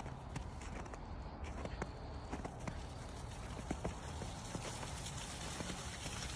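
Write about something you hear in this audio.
A dog's paws crunch on icy snow.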